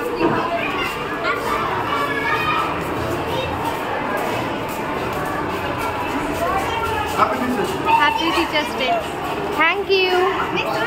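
Many children chatter and call out nearby in an echoing corridor.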